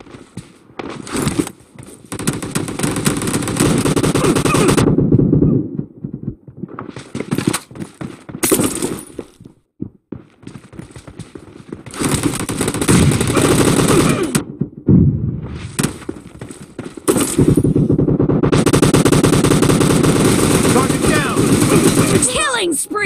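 Automatic rifles fire in rapid, loud bursts.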